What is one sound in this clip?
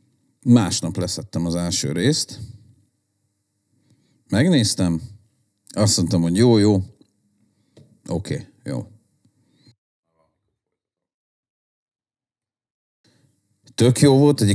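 A man speaks calmly and closely into a microphone, in short bursts with pauses.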